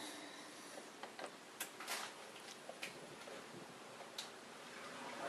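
Buttons on a dishwasher panel click.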